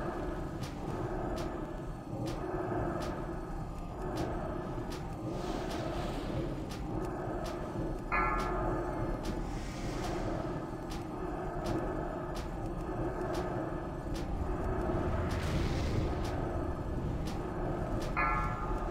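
Spell effects crackle and whoosh during a game battle.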